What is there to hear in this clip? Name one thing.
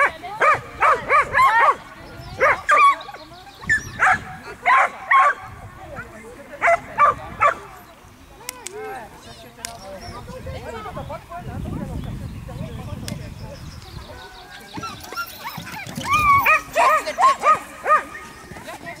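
A man calls out short, sharp commands to a dog outdoors.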